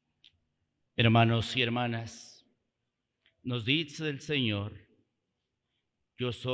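A man speaks slowly and solemnly into a microphone in a reverberant hall.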